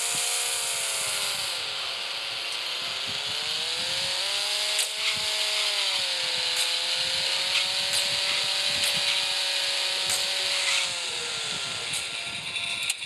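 A car engine drones, its pitch rising and falling as it speeds up and slows down.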